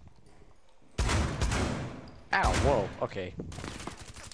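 Gunshots crack in short, quick bursts.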